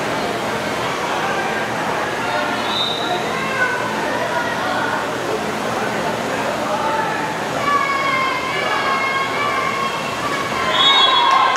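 Water splashes as swimmers churn through a pool.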